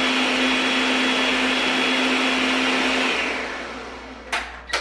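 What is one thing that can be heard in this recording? A blender whirs loudly, then winds down.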